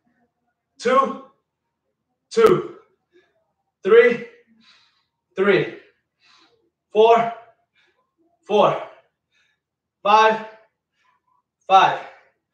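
A man counts out loud close by in short, even bursts.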